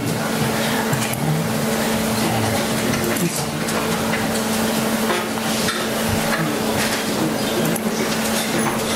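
A woman speaks quietly into a microphone.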